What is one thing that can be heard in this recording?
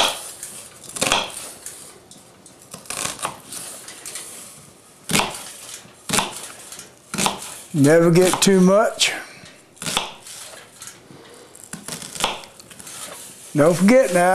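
A knife chops an onion on a cutting board with sharp taps.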